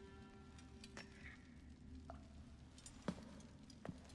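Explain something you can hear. A metal goblet clinks as it is set down on stone.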